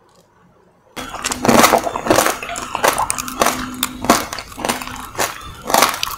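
A woman chews crunchy candy close to a microphone.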